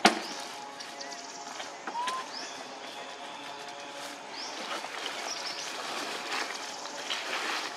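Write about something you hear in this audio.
Dry leaves rustle as young monkeys scramble over them.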